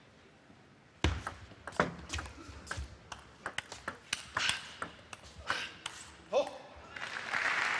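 A ping pong ball clicks back and forth quickly off paddles and table.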